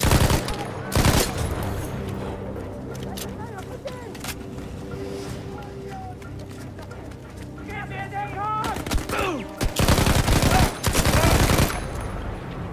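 Gunfire cracks in loud bursts.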